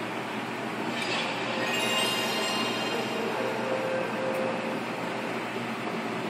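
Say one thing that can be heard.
A console startup chime plays through a television loudspeaker.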